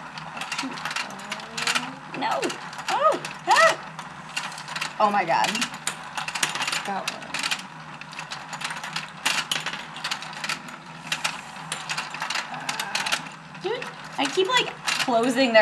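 A plastic toy game clicks and rattles as it turns.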